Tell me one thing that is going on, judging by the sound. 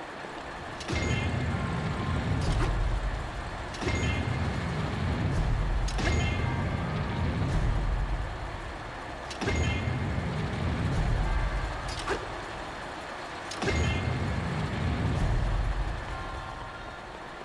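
A heavy machine hums and rumbles as it is carried along, in repeated swells.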